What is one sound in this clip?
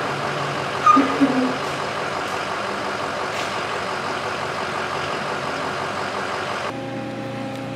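A large fan whirs steadily.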